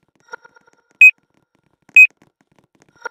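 Two short electronic beeps sound as a video game scanner runs.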